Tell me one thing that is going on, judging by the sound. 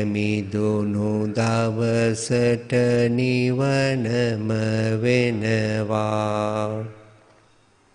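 A man chants in a deep, steady voice through a microphone.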